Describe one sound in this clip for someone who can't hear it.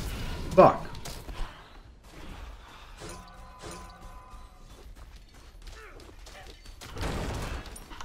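Magic blasts burst and whoosh.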